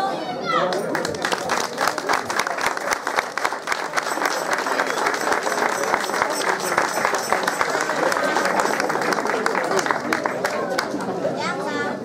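A choir of women sings together.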